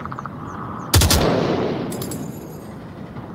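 A heavy gun fires a single loud blast that rumbles away.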